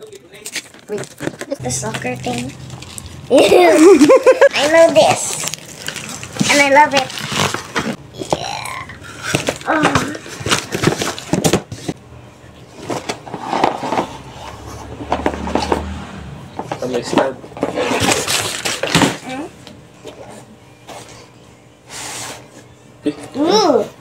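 Cardboard and plastic packaging rustle and crinkle as a box is handled.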